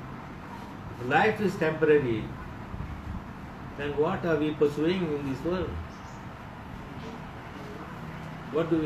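An elderly man speaks calmly nearby, in short phrases with pauses.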